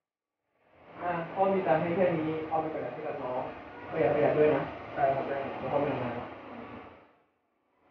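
A young man answers quietly close by.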